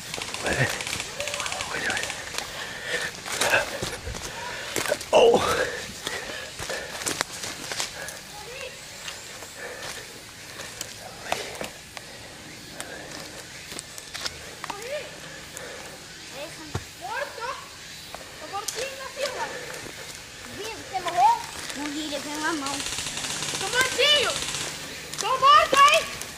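Footsteps crunch quickly through dry leaves and twigs.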